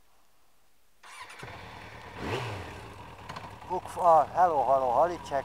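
A moped engine runs close by, revving up and down.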